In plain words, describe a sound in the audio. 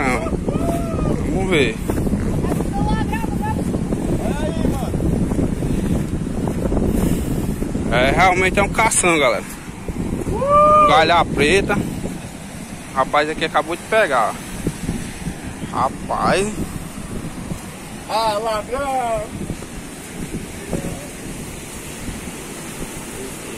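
Waves crash and roar on the shore nearby.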